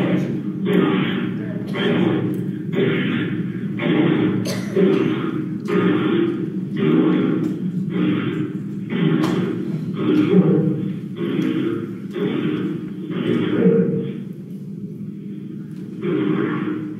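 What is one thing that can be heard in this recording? An elderly man speaks calmly through a microphone in a large room with a slight echo.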